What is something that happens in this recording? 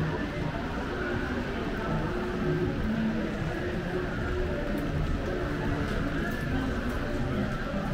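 People murmur and talk in the distance on a street outdoors.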